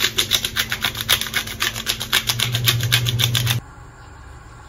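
A pepper grinder crunches with quick, rhythmic grinding.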